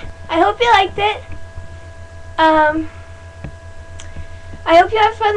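A young girl talks and sings playfully, close to a microphone.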